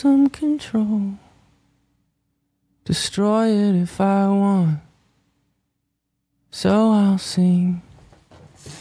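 A young man sings softly and closely into a microphone.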